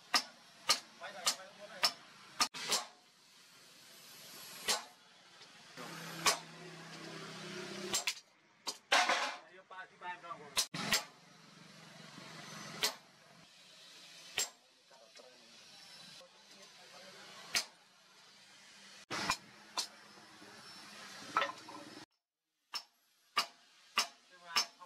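A hammer strikes metal on an anvil with sharp ringing clangs.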